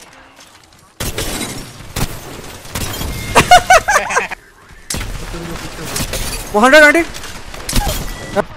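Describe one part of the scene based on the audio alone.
Gunfire from a video game bursts in rapid shots.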